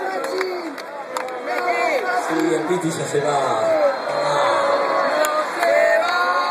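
A large crowd cheers and sings along.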